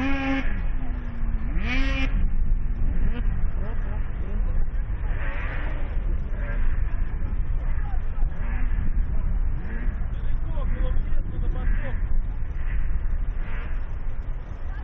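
A snowmobile engine revs up sharply a few times.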